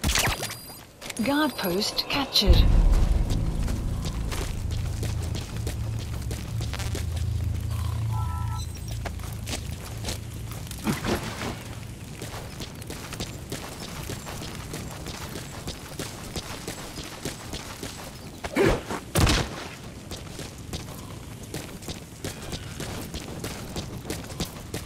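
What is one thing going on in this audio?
Footsteps crunch quickly over dry sand and gravel.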